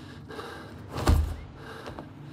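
Hands grab a wooden ladder with a heavy thud.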